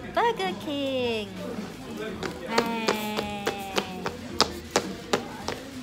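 A toddler babbles close by.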